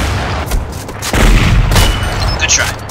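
An explosion booms with a deep roar nearby.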